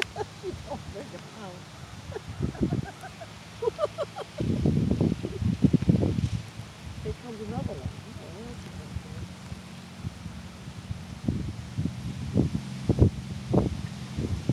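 A dog runs across grass.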